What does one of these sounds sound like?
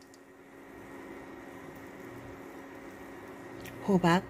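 Batter sizzles softly in a hot pan.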